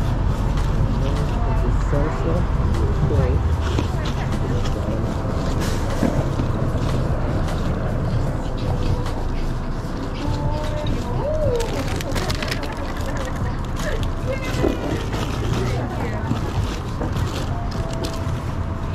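Backpack fabric rustles close by.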